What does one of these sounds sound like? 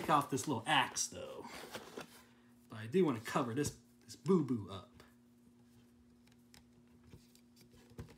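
Plastic toy figures knock and rattle as they are handled.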